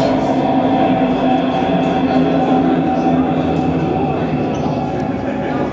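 A band plays loud heavy metal music in an echoing hall.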